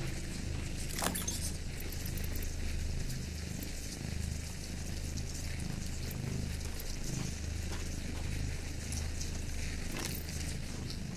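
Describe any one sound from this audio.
A menu clicks as items are selected.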